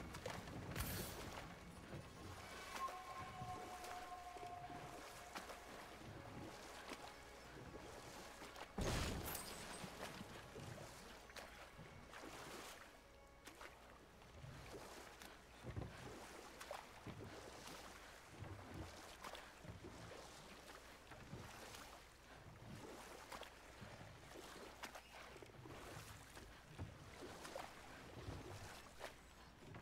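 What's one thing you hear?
Oars splash and paddle through water at an even pace.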